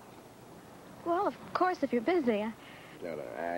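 A woman speaks brightly, close by.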